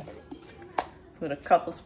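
A metal spoon clinks against a plastic bowl.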